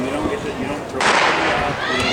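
A starting pistol fires with a sharp crack.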